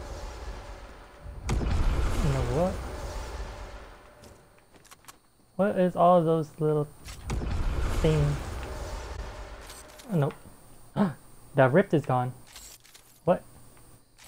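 Footsteps thud on wooden ramps.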